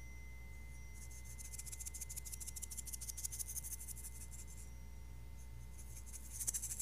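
Small chimes jingle and shimmer in bright, quick bursts.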